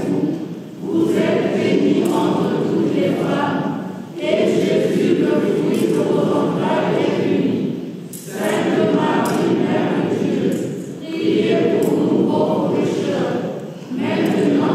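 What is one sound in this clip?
A congregation of men and women sings a slow hymn together in long phrases.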